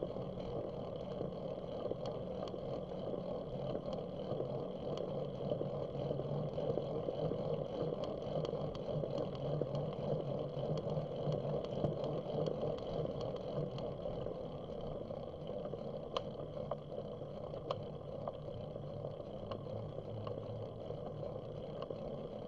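Skateboard wheels roll and rumble on the road.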